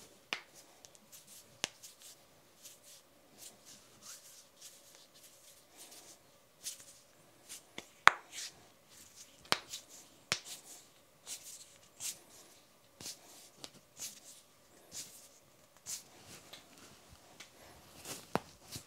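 Hands rub and slide against each other.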